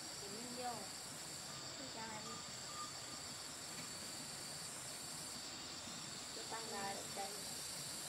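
A young woman talks calmly nearby, outdoors.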